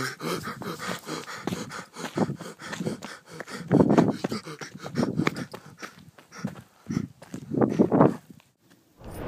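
A young man shouts wildly close by.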